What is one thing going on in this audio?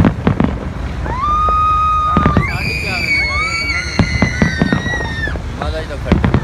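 Fireworks whistle as they rise.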